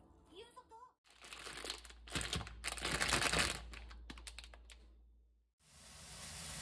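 A plastic noodle packet crinkles as it is handled.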